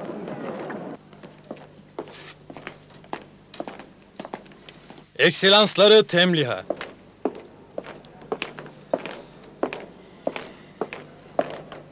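Footsteps sound on a stone floor.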